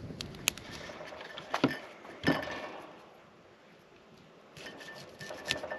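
A knife chops through broccoli on a cutting board.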